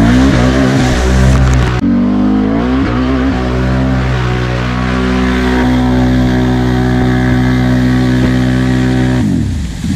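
Mud splatters and sprays against the vehicle.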